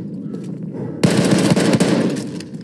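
An explosion booms nearby.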